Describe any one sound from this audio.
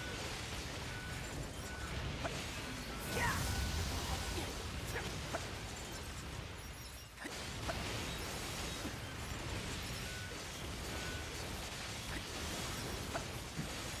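Explosions boom and crackle in a fight.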